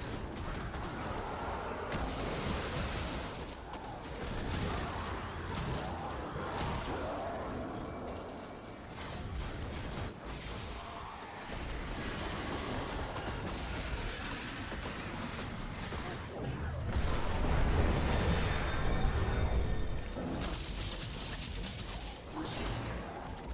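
Explosions boom with deep rumbling blasts.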